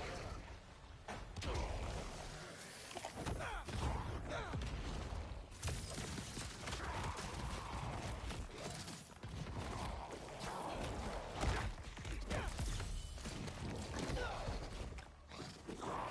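Heavy blows and crashes thud throughout a fight.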